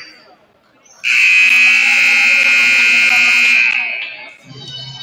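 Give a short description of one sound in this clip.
A buzzer sounds loudly and steadily in a large echoing gym.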